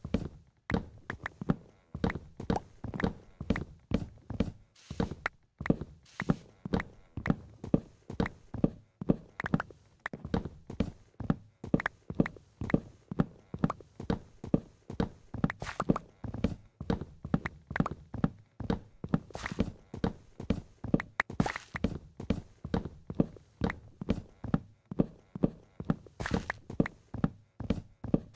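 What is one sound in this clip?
Blocks of wood break and pop loose.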